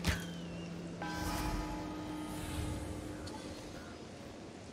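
A soft magical chime rings and shimmers.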